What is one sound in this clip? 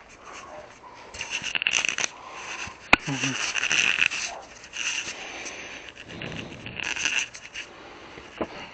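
Clothing rustles and brushes close against the microphone.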